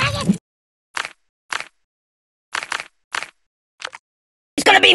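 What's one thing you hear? Menu buttons click softly several times.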